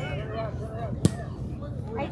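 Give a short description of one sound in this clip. A ball is kicked with a sharp thump.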